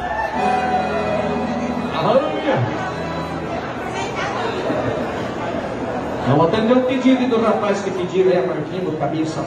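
A crowd of men and women chatter in a large echoing hall.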